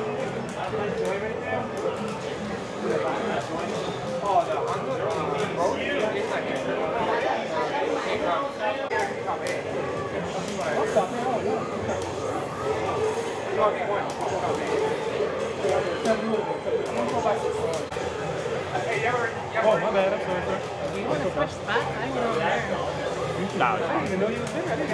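A crowd of people chatters loudly indoors.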